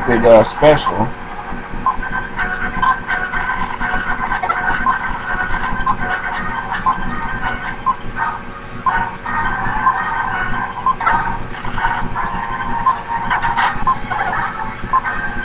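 Video game music plays steadily with a bright melody.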